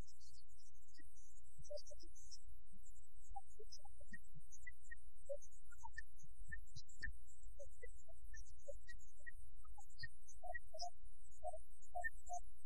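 A veena's strings are plucked in slow single notes.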